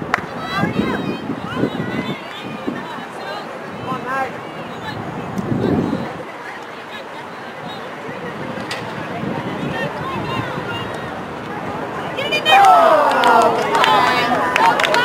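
Young women shout and call to each other across an outdoor field.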